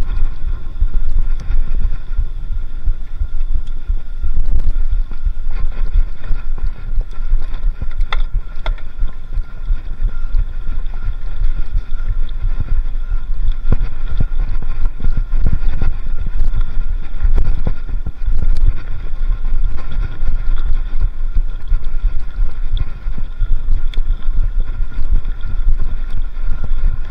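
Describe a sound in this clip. A bicycle frame clatters and creaks over bumps.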